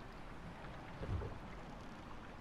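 A heavy wooden plank drops into place with a thud.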